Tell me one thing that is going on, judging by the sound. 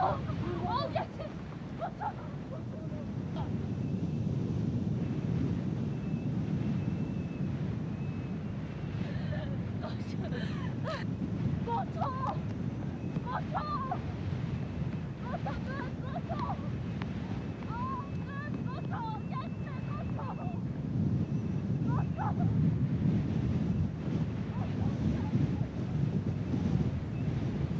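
Strong wind howls and blows snow across open ground.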